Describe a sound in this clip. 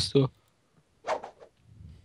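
A shovel swings through the air with a whoosh.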